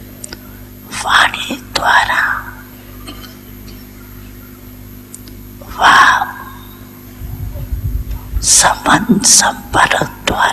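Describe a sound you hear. An elderly woman speaks slowly and calmly into a microphone, with pauses.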